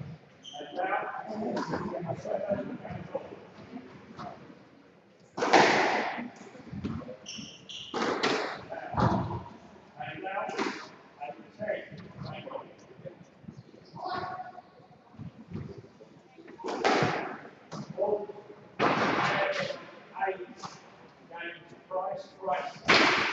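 A squash ball smacks against the walls of an echoing court.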